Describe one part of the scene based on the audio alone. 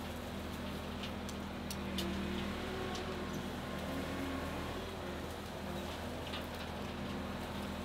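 A diesel engine runs steadily nearby.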